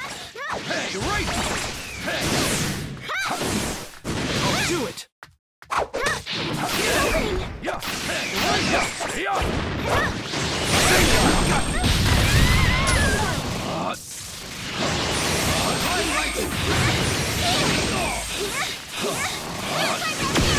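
Energy blasts whoosh and crackle.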